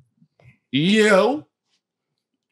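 A man laughs loudly near a microphone.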